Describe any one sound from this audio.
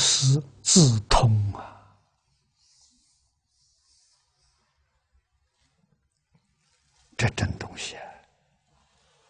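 An elderly man speaks calmly into a close microphone, with long pauses.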